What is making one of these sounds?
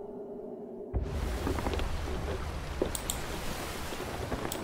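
Wind blows over the open sea.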